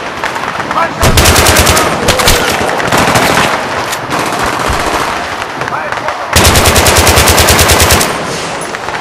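Rifle fire rattles in rapid bursts.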